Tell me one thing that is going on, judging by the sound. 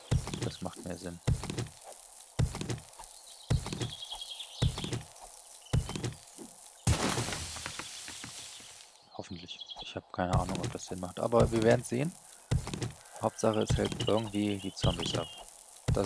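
A wooden club thuds repeatedly against rock and earth.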